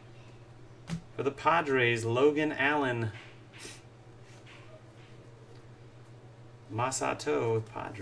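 Trading cards rustle and slide in hands.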